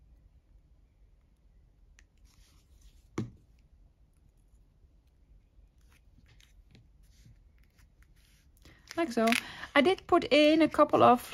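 Paper rustles softly as it is handled.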